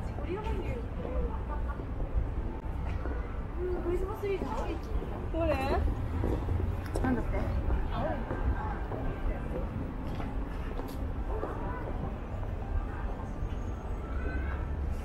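Several adults chat casually nearby outdoors.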